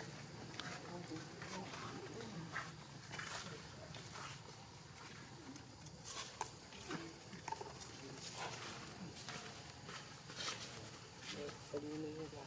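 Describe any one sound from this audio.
Dry leaves rustle and crackle as a small monkey walks over them.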